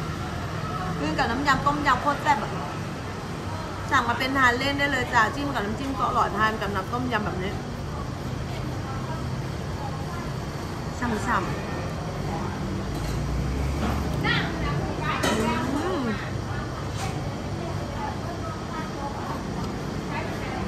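Cutlery clinks against a bowl.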